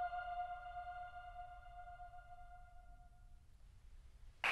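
A piano chord rings and slowly fades.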